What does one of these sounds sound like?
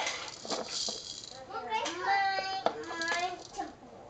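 A plastic toy clatters under a baby's hands.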